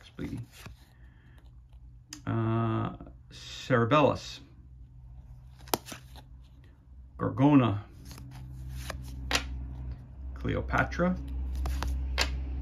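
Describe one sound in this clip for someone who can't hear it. Playing cards rustle and click as they are shuffled by hand.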